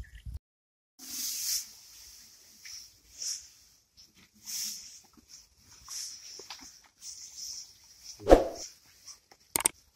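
A bull munches and crunches dry hay close by.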